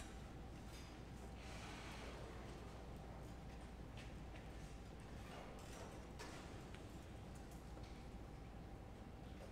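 A school wind band plays in a large echoing hall.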